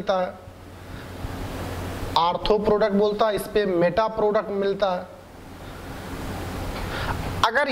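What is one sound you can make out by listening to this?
A man talks in a lecturing tone, close to a microphone.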